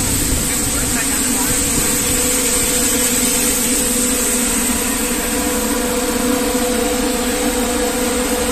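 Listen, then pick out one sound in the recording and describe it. A machine hums and whirs loudly and steadily.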